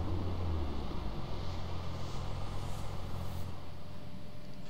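A car engine rumbles low and steady.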